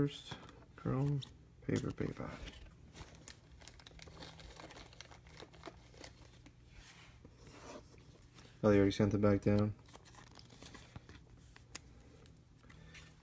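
Plastic card holders clack and rustle as hands handle them.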